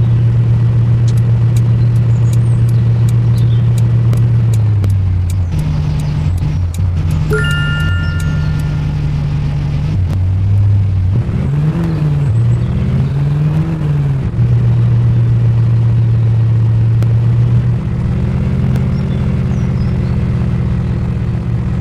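A car engine hums steadily, its pitch rising and falling with the speed.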